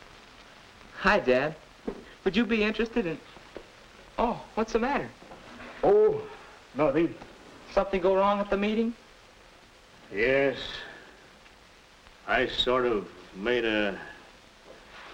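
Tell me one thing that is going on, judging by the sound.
An elderly man talks in a low, tired voice close by.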